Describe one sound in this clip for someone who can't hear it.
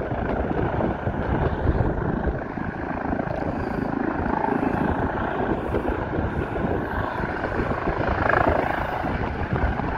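A helicopter hovers with rotor thumping.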